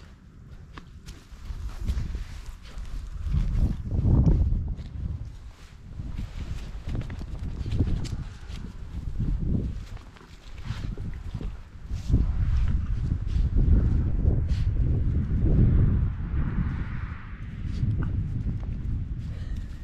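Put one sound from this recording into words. A puppy tugs and shakes a plush toy, rustling the grass.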